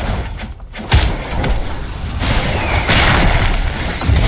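A heavy blast booms and rumbles.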